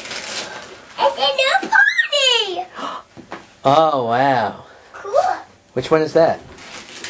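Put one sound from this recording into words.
A young girl squeals and shouts excitedly close by.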